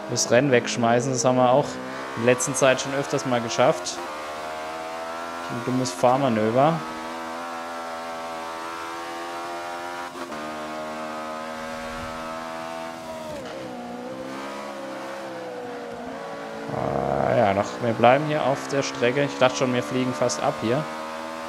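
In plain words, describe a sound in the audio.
A racing car engine roars at high revs, its pitch rising and dropping as it speeds up and slows down.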